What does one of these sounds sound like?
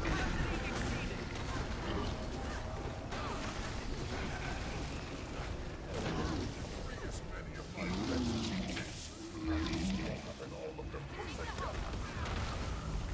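Game spells crackle and blast in quick bursts.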